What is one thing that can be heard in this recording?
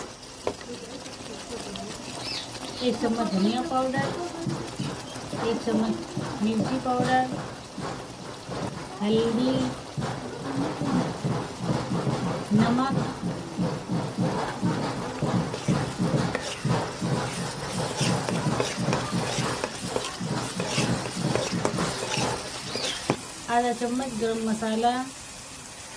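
Oil sizzles steadily in a pan.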